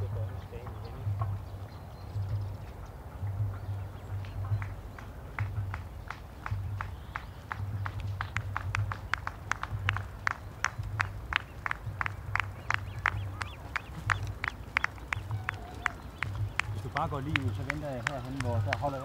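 A bicycle rolls by on pavement.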